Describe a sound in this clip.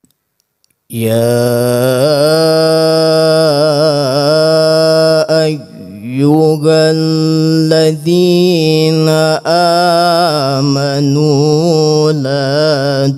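A man chants a long melodic recitation loudly into a microphone, his voice echoing.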